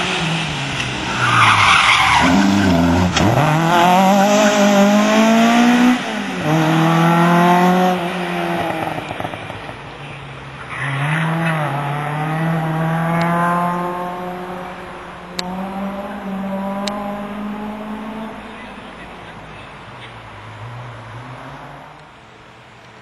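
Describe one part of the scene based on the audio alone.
A racing hatchback's engine revs hard through gear changes and fades into the distance.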